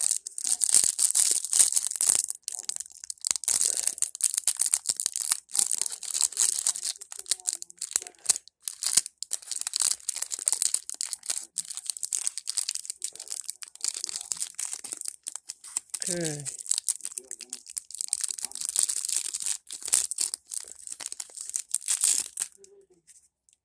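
Plastic wrapping crinkles and rustles close by as fingers tear it open.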